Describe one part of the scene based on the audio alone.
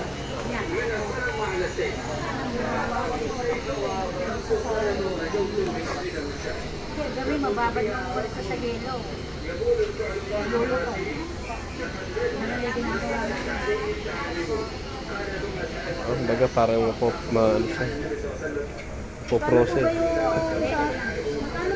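A middle-aged woman talks nearby in a conversational tone.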